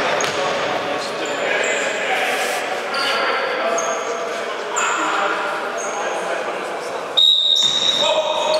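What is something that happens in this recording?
Sneakers squeak sharply on a hall floor.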